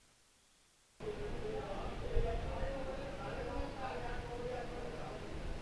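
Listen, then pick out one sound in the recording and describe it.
A crowd murmurs nearby.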